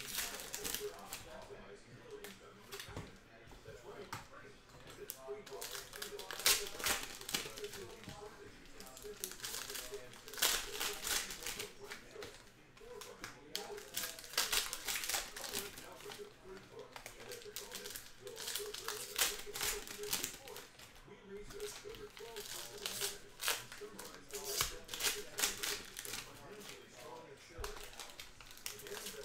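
Foil card wrappers crinkle and tear as hands open them.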